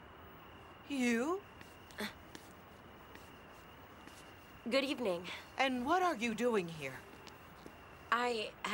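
A young woman answers in a raised voice close by.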